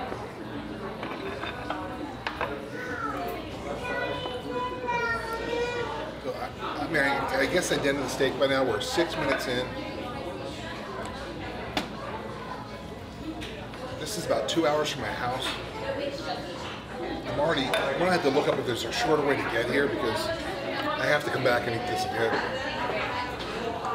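Knives and forks clink on plates.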